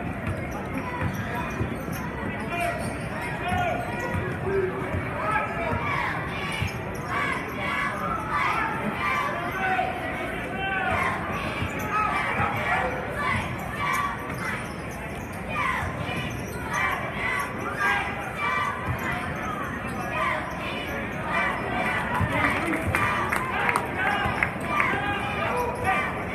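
A crowd murmurs and chatters in the stands.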